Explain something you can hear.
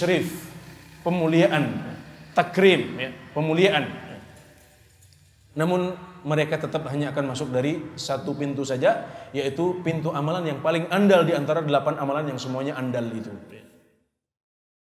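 A man speaks with animation into a microphone in a softly echoing room.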